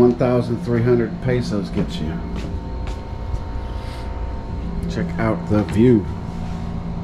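A man speaks close by in short bursts.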